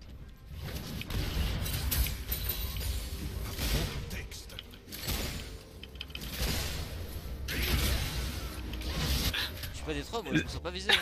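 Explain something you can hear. Game spell effects whoosh and clash during a fight.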